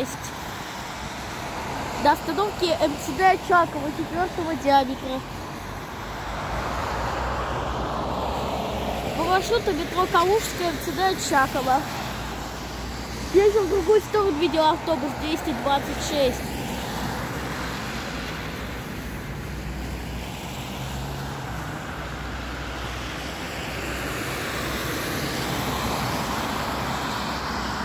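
Cars swish past on a wet road.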